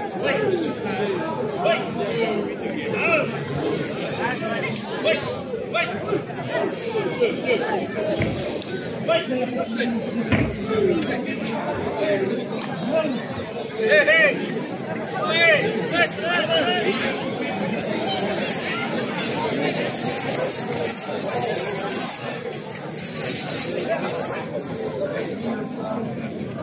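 A large outdoor crowd chatters and calls out loudly.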